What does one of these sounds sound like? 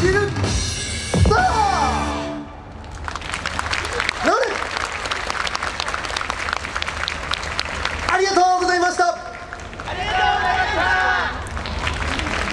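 A group of young performers shouts together in unison.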